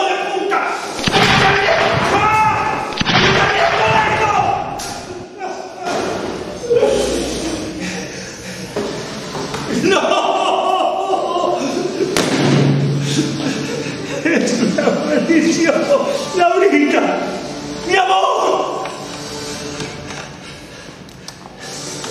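An elderly man speaks loudly with agitation close by.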